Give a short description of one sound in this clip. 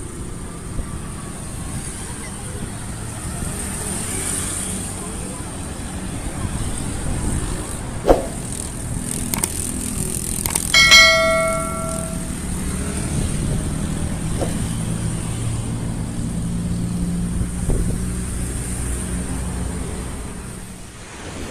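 Traffic rumbles steadily along a road outdoors.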